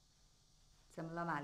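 A woman speaks up close.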